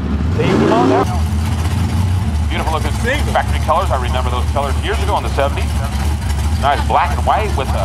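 A race car engine idles with a rough, lumpy rumble close by.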